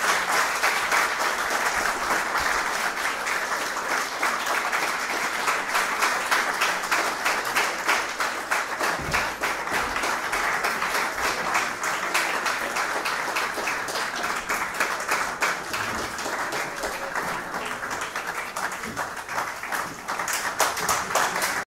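An audience applauds steadily in a room.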